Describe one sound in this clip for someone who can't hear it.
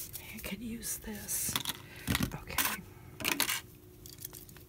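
Plastic packaging crinkles and clicks as it is handled.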